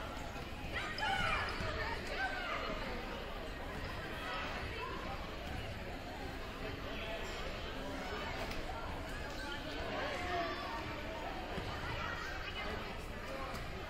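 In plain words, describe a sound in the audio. A crowd of people chatter in a large echoing gym.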